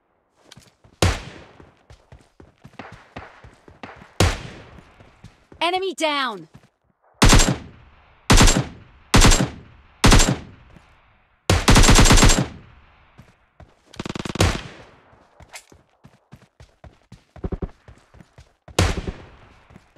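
Single rifle shots crack loudly, one at a time.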